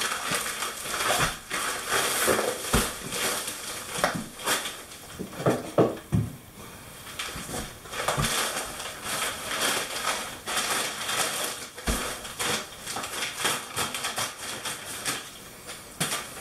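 A paper bag rustles and crinkles as it is handled.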